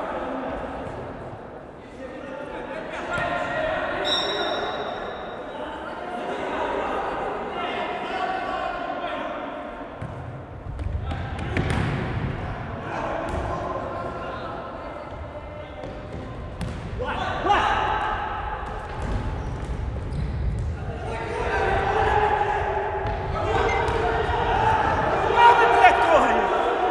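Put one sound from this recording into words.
Men shout to each other in a large echoing hall.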